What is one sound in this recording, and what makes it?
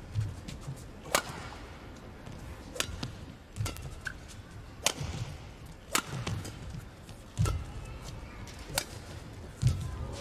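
Sneakers squeak and thud on a court floor.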